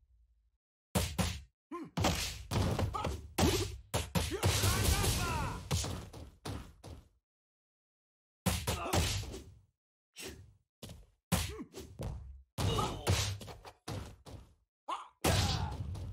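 Punches and kicks land with sharp thuds and smacks.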